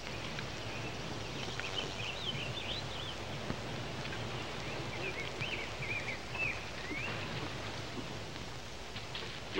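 Wooden wagon wheels creak and rumble.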